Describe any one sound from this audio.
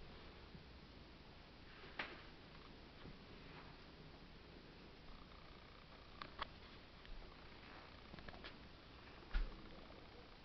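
A cat's paws tap and thump on a hard countertop as it walks.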